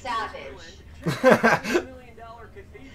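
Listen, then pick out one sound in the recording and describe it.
A woman laughs loudly over an online call.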